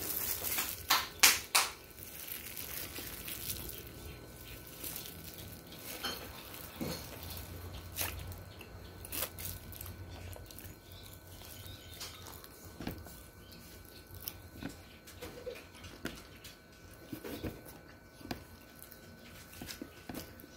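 Plastic wrapping crinkles in a young man's hands.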